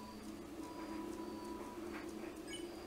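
Quick electronic blips sound as text types out.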